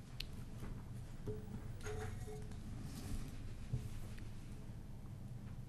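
Footsteps thud softly as a man walks.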